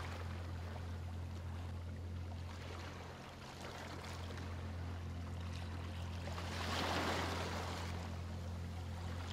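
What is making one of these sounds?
Small waves lap gently onto a shore.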